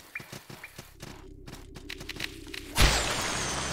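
Footsteps tap along a hard floor.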